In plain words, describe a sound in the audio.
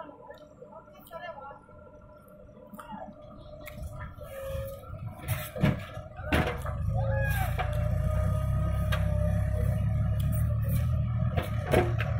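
A backhoe bucket scrapes and knocks into soil.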